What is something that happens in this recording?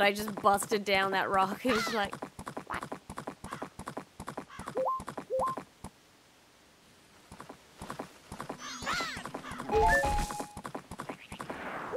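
Hooves gallop in quick, steady beats.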